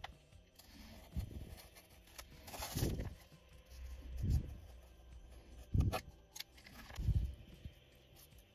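A knife blade scratches lightly across thin wood.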